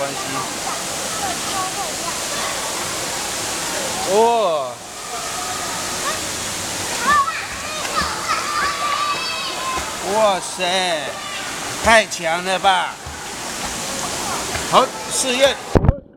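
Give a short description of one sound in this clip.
Water splashes as a child kicks in an echoing pool.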